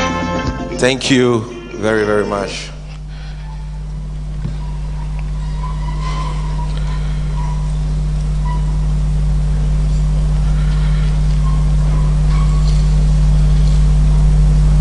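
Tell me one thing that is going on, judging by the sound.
A man speaks slowly into a microphone, heard through loudspeakers.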